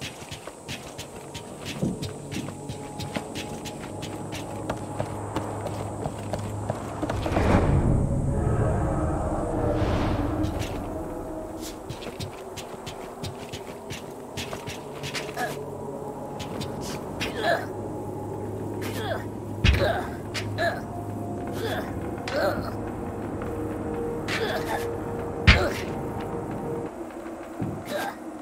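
Footsteps clatter on wooden planks.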